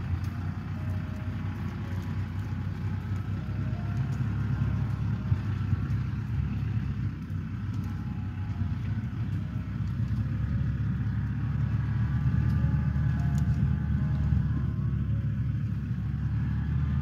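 A diesel compact tractor engine rumbles.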